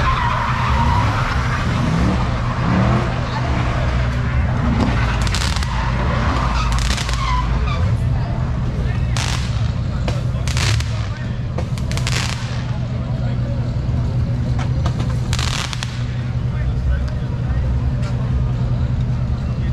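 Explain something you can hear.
A car engine roars with screeching tyres.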